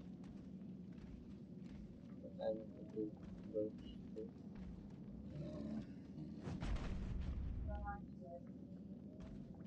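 Game sound effects clash and thud.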